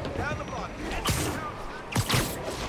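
Something whooshes swiftly through the air.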